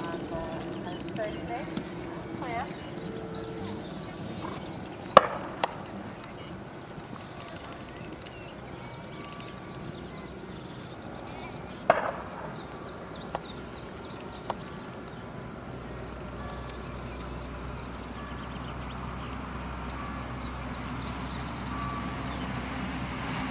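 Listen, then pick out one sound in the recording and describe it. A horse trots on grass with soft, steady hoofbeats.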